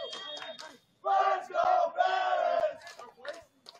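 Young players shout to each other across an open outdoor field.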